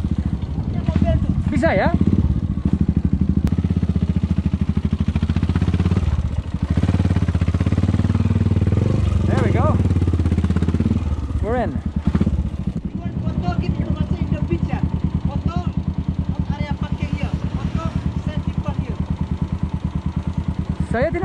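A motorcycle engine chugs steadily up close.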